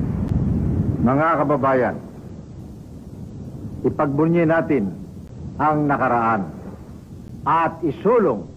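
An elderly man speaks calmly and slowly.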